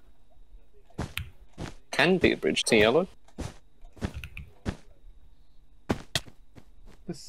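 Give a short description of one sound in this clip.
Game blocks are placed one after another with short soft thuds.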